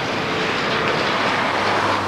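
A car passes on a road close by.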